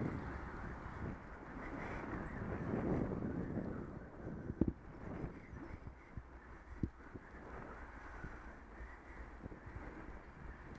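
Wind rushes and buffets outdoors.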